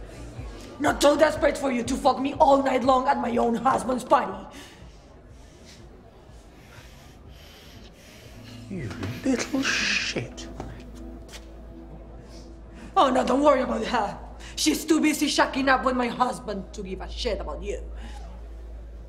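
A woman shouts angrily close by.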